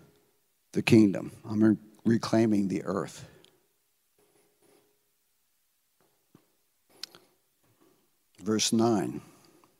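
An elderly man speaks with animation through a microphone, with pauses.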